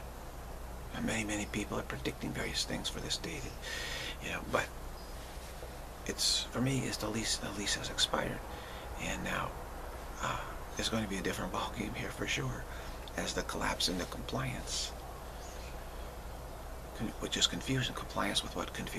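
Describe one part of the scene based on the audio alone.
An older man speaks calmly and close to a microphone.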